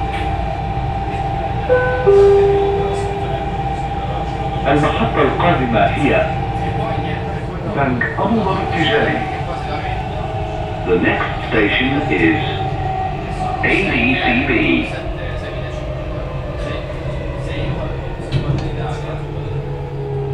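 A train hums and rumbles steadily along its track.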